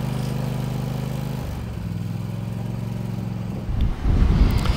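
A mower engine idles with a steady low hum.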